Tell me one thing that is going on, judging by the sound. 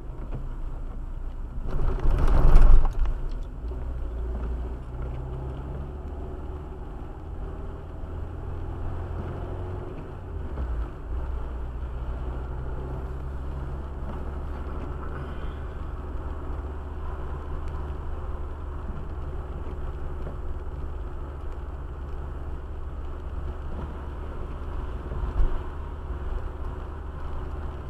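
Tyres roll on a wet road.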